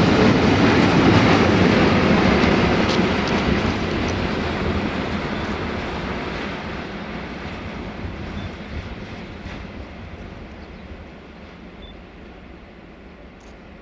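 A freight train rumbles past on the rails and fades into the distance.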